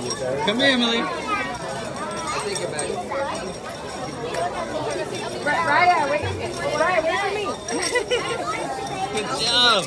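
A young woman speaks warmly close by.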